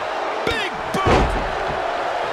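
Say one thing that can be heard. A heavy body slams onto a wrestling ring mat with a loud thud.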